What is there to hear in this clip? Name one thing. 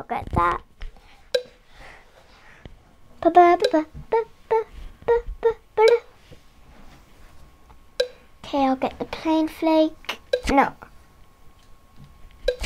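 Short cheerful electronic chimes and pops sound in quick bursts.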